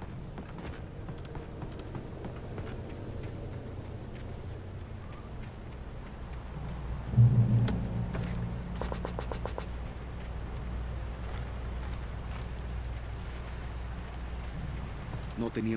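Footsteps crunch on a forest path.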